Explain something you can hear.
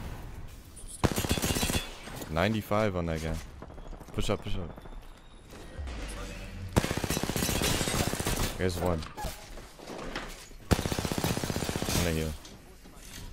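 A rapid-fire gun shoots in bursts.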